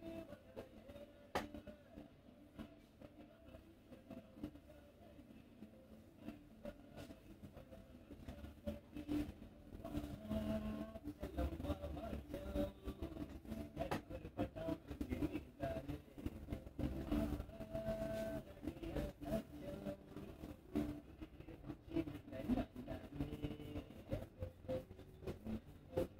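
Hands rub and scratch through hair with soft rustling.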